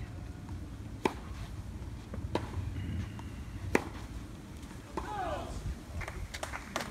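A tennis ball is struck hard by rackets in a rally.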